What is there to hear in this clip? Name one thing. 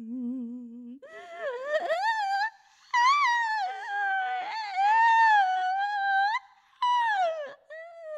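A young woman sings into a microphone in a high, wavering voice.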